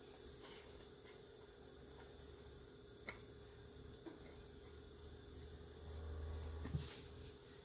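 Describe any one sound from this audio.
A plastic scraper taps and scrapes through crumbly dough.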